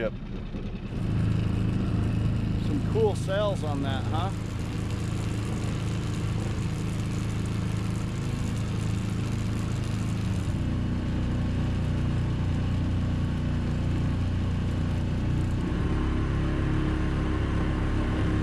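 A boat motor hums low and steady close by.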